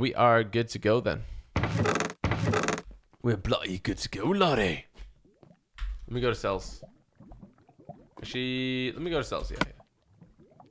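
A young man talks with animation close to a headset microphone.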